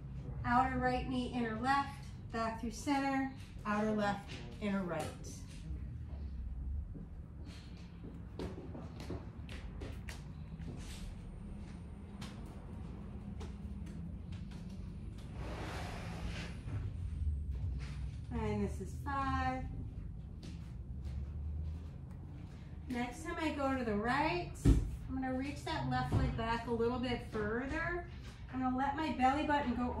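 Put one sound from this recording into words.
A woman speaks calmly and gently nearby, with pauses.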